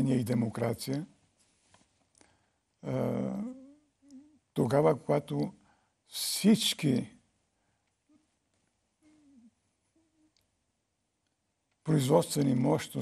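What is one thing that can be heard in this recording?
An elderly man speaks calmly and deliberately into a microphone, with long pauses.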